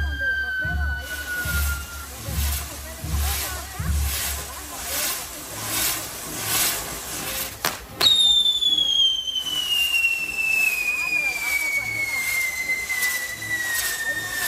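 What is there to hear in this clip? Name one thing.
A firework whistle shrieks and slowly falls in pitch.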